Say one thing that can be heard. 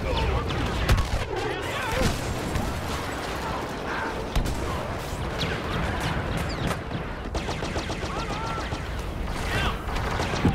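Laser gunfire cracks and zaps in short bursts.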